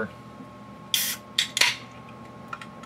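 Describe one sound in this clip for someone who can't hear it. A can snaps open with a hiss.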